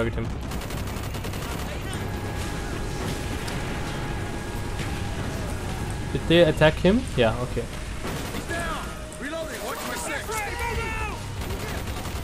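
Explosions boom and rumble low.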